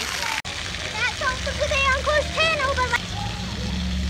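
A young child speaks in a high voice close by.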